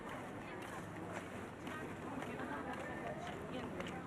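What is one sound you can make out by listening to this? A crowd of people murmurs nearby outdoors.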